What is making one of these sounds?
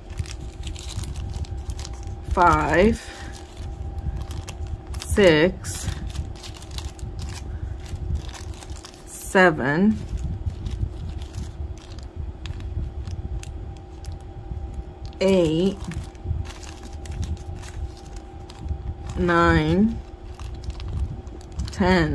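Stiff cards tap and scrape against each other.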